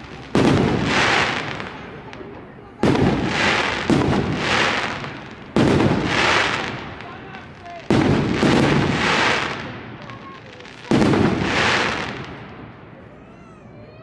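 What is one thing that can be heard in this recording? Fireworks boom loudly overhead, each blast echoing away.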